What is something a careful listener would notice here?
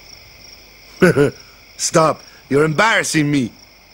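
A man speaks loudly with embarrassment.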